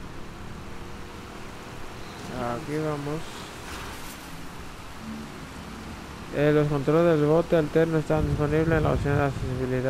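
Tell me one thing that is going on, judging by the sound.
Water splashes against a small boat moving along.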